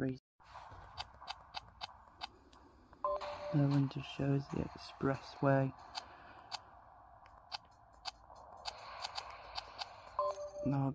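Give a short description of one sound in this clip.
A handheld game console plays short electronic menu clicks.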